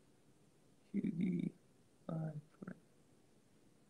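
A young man speaks briefly and softly, close to the microphone.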